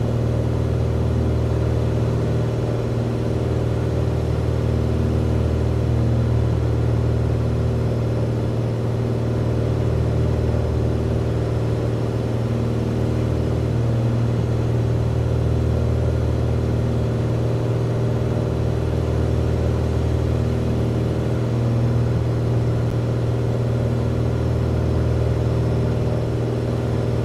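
A small propeller plane's engine drones steadily from inside the cabin.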